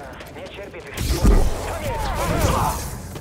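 A lightsaber ignites and hums loudly.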